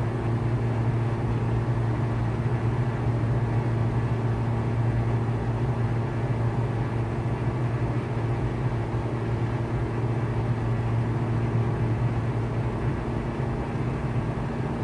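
A small plane's propeller engine drones steadily from inside the cockpit.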